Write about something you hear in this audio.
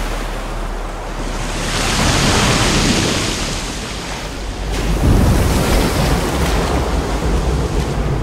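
Water laps and washes over the shore.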